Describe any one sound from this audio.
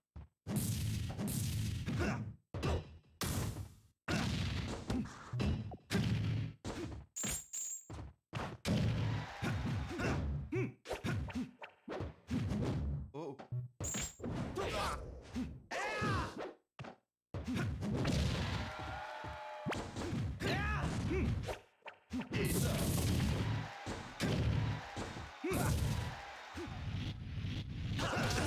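A man talks excitedly into a microphone.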